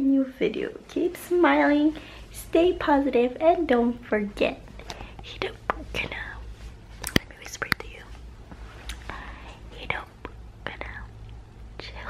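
A young woman talks animatedly close to the microphone.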